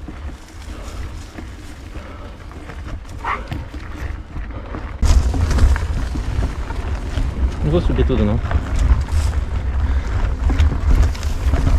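Bike tyres crunch and rattle over a rough dirt trail.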